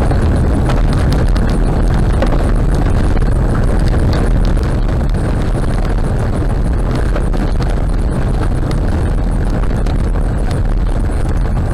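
Tyres rumble and rattle over a rough gravel road.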